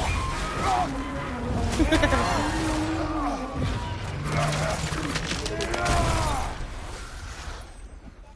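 A magical blast roars and crackles.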